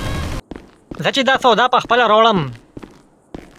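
A man calls out while hurrying down stairs.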